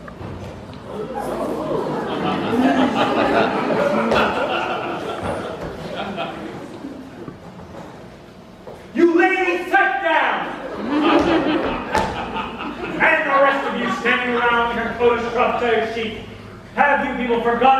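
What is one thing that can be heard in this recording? A chorus of young voices sings together.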